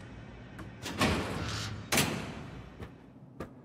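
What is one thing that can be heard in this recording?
A heavy metal door scrapes open.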